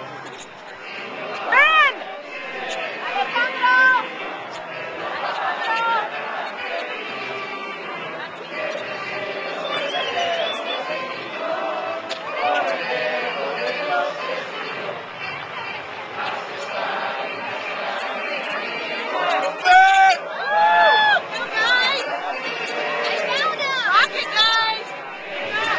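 A large outdoor crowd chatters and murmurs all around.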